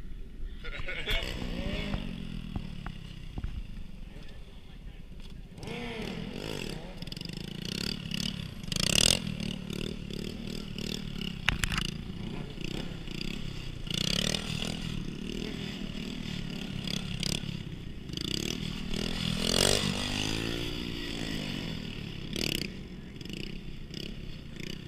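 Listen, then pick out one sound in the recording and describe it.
A small-displacement motorcycle revs up and down.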